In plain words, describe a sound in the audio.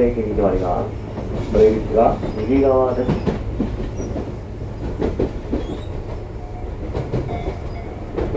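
A train rumbles slowly along the tracks.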